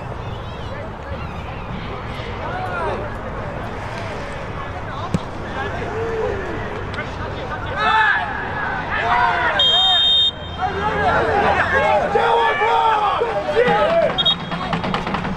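Young women shout to each other across an open field, far off.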